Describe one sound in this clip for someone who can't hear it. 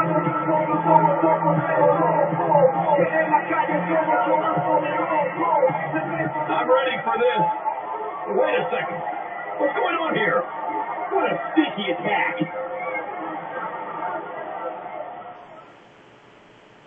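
A crowd cheers loudly through a television speaker.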